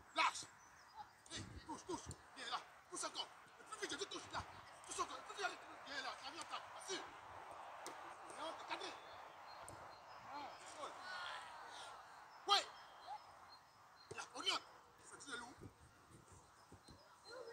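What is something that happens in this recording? Boys shout and call out in the open air.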